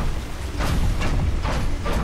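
A large truck engine rumbles close by.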